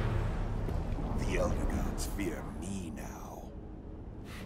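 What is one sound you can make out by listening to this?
A deep-voiced man speaks menacingly.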